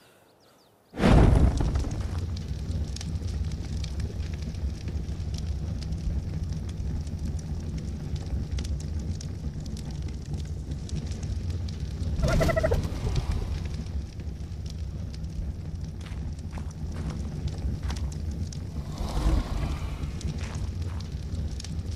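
A fire crackles and roars steadily.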